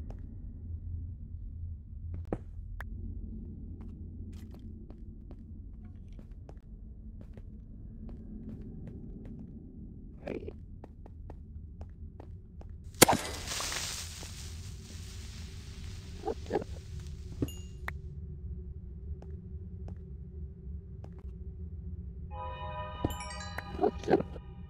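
Footsteps tap softly on stone.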